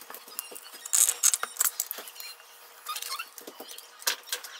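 A plastic tub lid is pried off with a crinkling snap.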